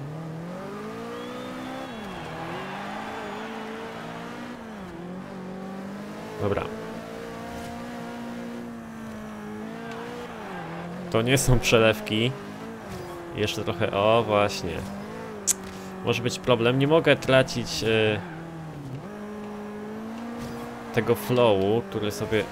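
A racing car engine roars steadily and shifts up and down in pitch.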